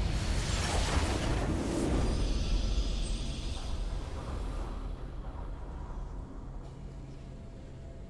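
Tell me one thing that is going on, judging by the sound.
A triumphant fanfare swells and then fades.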